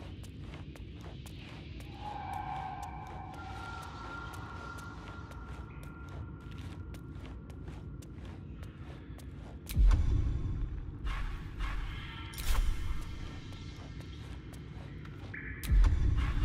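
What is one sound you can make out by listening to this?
Footsteps crunch softly on rocky ground.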